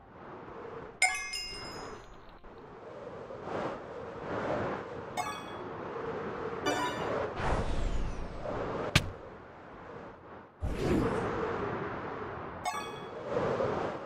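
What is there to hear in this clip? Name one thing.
Bright chimes ring out in short sparkling bursts.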